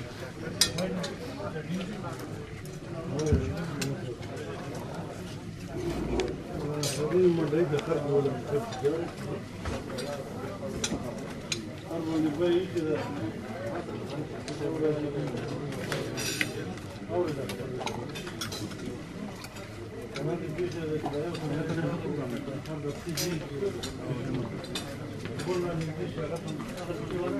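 Many men talk over each other in a busy, noisy room.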